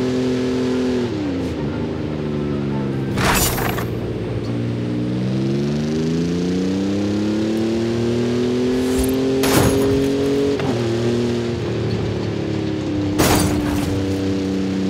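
A racing engine roars steadily, dropping in pitch at each gear change and then climbing again.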